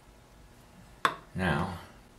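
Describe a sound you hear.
A metal tool clicks down onto a wooden board.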